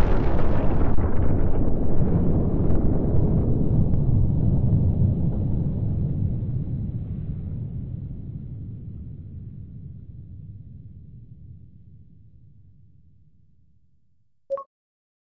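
A huge explosion booms with a deep rumble that slowly fades away.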